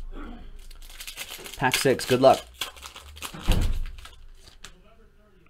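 A foil pack crinkles and tears open.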